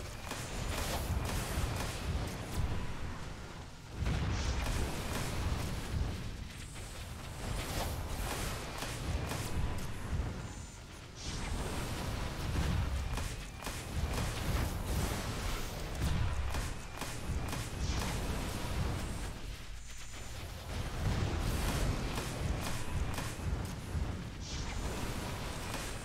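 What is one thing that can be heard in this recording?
Energy beams crackle and hum in rapid bursts.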